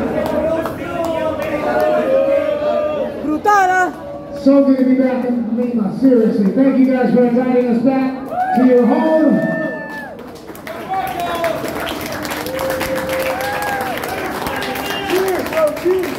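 A man talks loudly and with animation into a microphone, heard through loudspeakers in an echoing hall.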